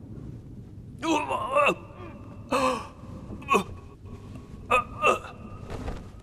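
A man screams in agony.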